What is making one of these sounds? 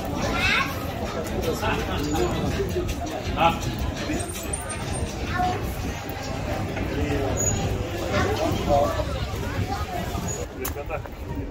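A crowd of people chatters in a busy outdoor street.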